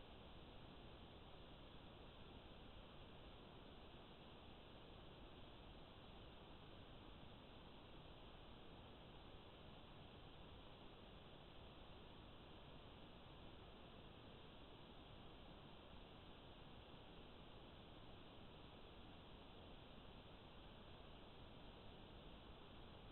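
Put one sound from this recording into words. Water rushes and splashes through a pipe.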